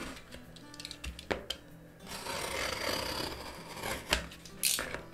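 A blade scrapes along packing tape on a cardboard box.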